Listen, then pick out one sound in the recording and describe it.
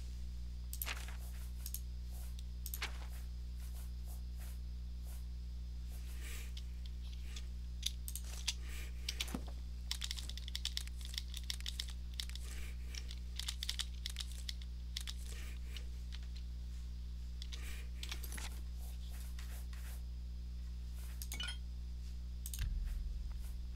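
Soft clicks tick now and then.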